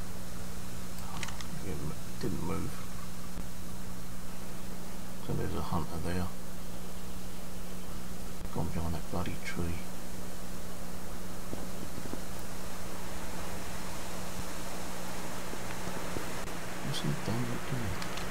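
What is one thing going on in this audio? A young man talks casually into a microphone in short bursts.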